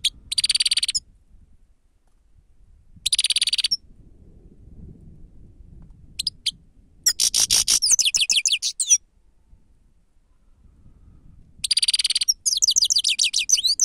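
A small songbird sings close by in bursts of rapid trills and twitters.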